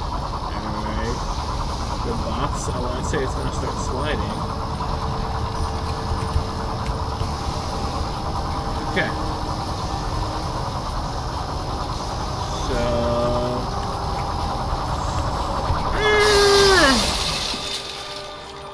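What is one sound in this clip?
Large spinning saw blades whir with a low steady drone.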